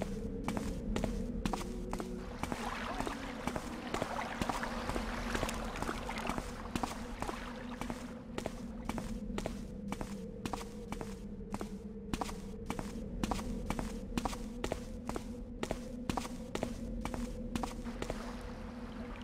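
Footsteps tread steadily on stone.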